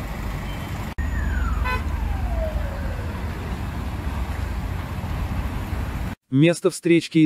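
Traffic rumbles steadily along a busy road nearby.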